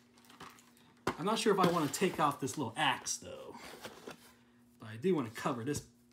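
A hand taps on plastic packaging.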